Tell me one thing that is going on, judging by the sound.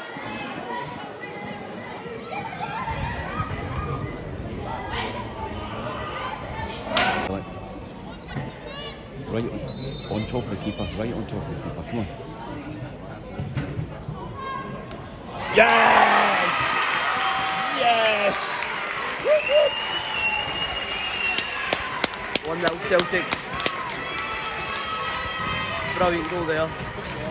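Women footballers shout to each other across an outdoor pitch.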